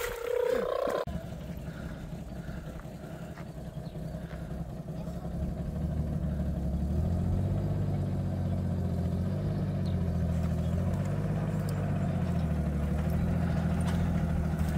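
A vehicle engine idles with a low, steady rumble.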